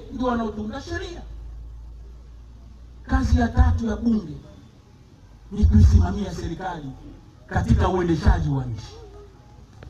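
A man speaks loudly through a microphone and loudspeakers outdoors, in short forceful bursts with pauses.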